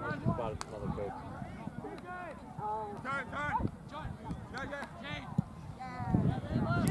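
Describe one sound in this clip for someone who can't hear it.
Young players shout and call out across an open field.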